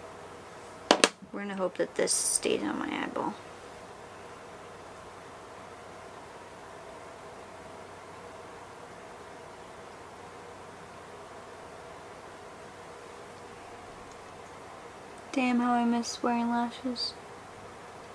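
A young woman speaks briefly and close by, in a calm voice.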